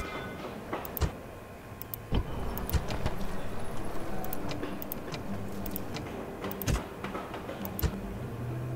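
Interface buttons click sharply several times.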